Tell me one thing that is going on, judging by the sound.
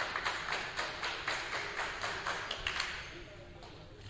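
A cart rattles as it is pushed across a wooden floor in a large echoing hall.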